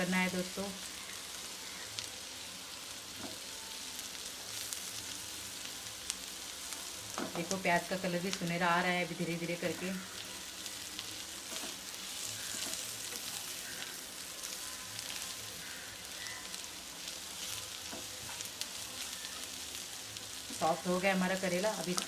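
A plastic spatula scrapes and stirs food in a frying pan.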